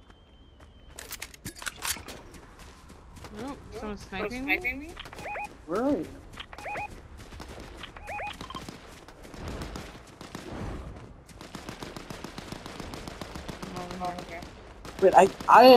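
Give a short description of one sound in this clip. Quick footsteps run through dry grass and over gravel.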